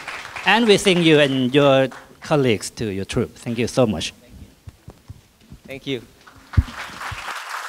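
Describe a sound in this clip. A man speaks with animation through a microphone in an echoing hall.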